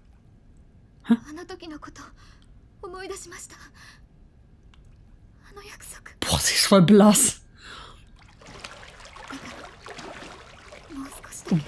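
A young woman speaks quietly and gently.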